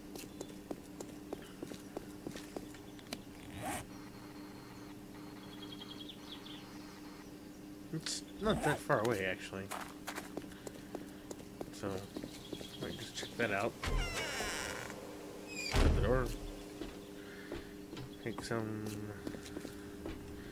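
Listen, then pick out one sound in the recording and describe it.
Footsteps crunch on hard ground.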